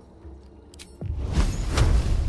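A fiery spell bursts with a roaring whoosh.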